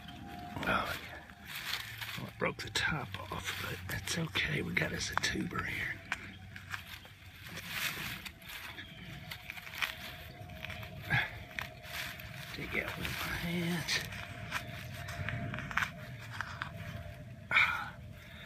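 Fingers scrape and dig in loose soil.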